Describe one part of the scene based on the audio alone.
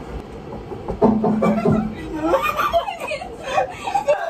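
A young woman laughs up close.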